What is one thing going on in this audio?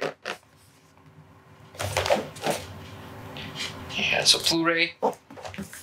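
A plastic sleeve slides and rustles against a cardboard box.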